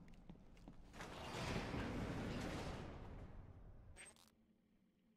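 A heavy metal door slides open with a rumbling scrape.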